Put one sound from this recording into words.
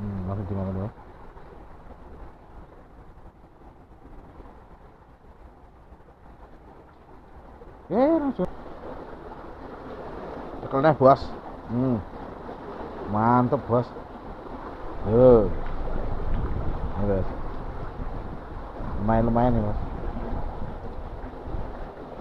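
A river rushes and gurgles steadily nearby.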